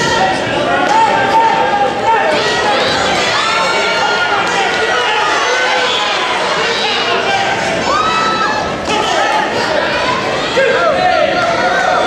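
Young women in the crowd scream and shout with excitement.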